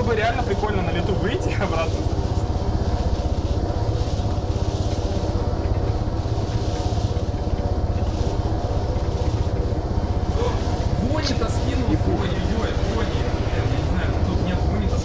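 A helicopter's rotor thumps in a steady, fast, low drone.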